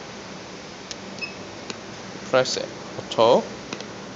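A finger presses buttons on a keypad with soft clicks.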